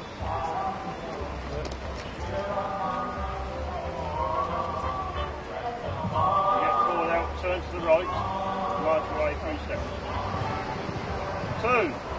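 An elderly man speaks in a clear, commanding voice.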